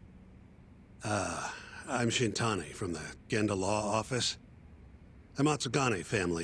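Another man introduces himself politely.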